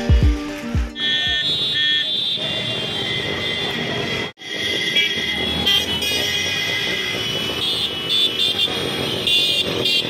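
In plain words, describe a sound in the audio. Horns beep and honk from passing traffic.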